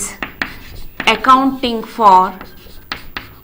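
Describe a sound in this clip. A woman speaks calmly nearby, as if teaching.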